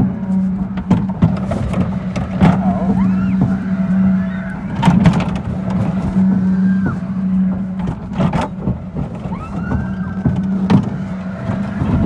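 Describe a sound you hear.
An amusement ride's machinery hums steadily as it spins.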